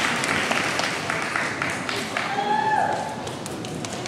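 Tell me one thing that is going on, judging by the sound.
An audience claps in a large echoing hall.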